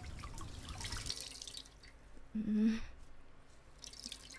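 Water runs from a tap into a basin.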